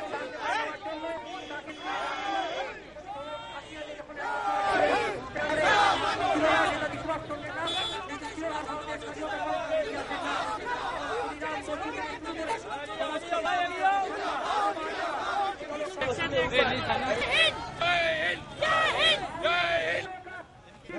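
A crowd of men and women chants slogans loudly outdoors.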